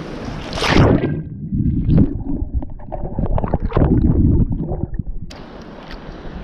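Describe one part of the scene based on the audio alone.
Water gurgles and rumbles underwater.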